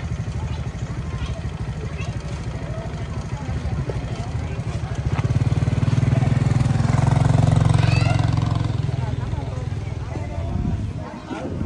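A motorbike engine idles close by.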